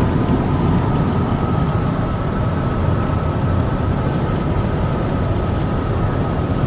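A car drives fast along a highway, its engine and tyres roaring steadily.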